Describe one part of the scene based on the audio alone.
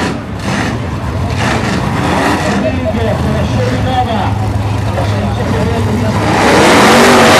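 A race car engine idles with a deep, uneven rumble.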